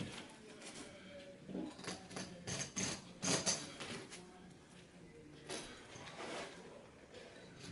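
Carpet rustles and scrapes as it is pulled up from the floor.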